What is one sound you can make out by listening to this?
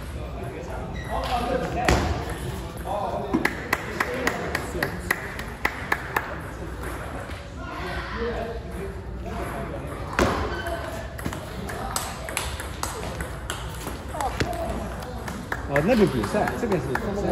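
A ping-pong ball clicks rapidly back and forth off paddles and a table.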